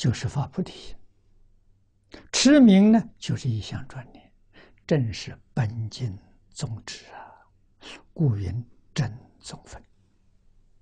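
An elderly man speaks calmly and clearly close to a microphone.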